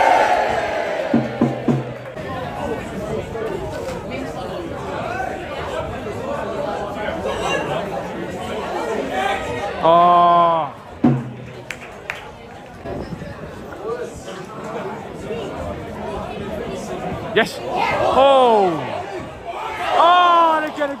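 A large crowd of spectators murmurs and chatters outdoors.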